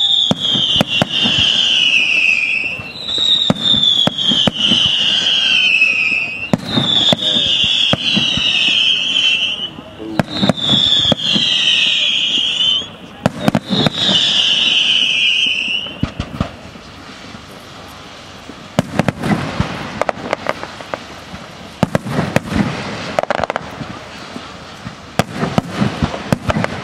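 Fireworks crackle after bursting.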